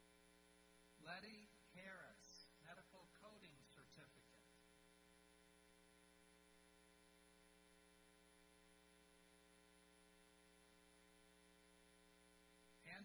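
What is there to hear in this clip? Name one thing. A man reads out over a loudspeaker in a large echoing hall.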